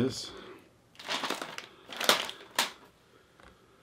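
A laptop lid knocks and clatters as it is handled.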